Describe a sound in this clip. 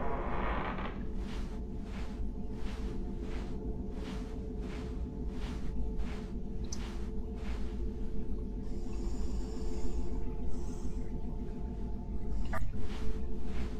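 Soft rhythmic thuds of someone crawling repeat steadily.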